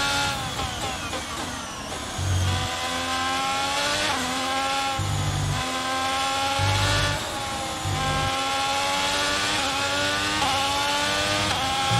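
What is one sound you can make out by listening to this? A racing car engine screams at high revs, rising and dropping in pitch as it shifts gears.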